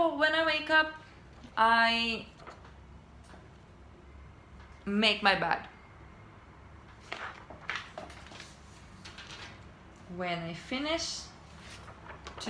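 A young woman speaks close to a microphone in an animated, teacherly voice, with short pauses.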